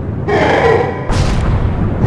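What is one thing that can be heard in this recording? A giant monster roars loudly.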